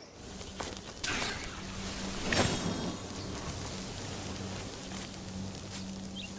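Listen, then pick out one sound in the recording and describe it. Magical wisps swirl and whoosh around a man.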